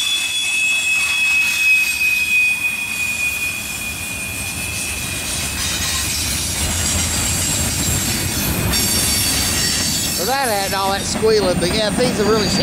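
A freight train rolls past, its steel wheels rumbling on the rails.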